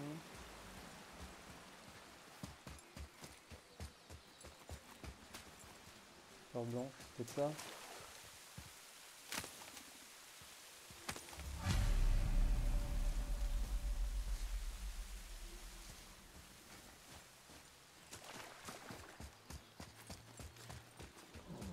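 Heavy footsteps crunch over grass and stone.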